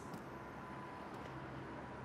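Footsteps walk on pavement.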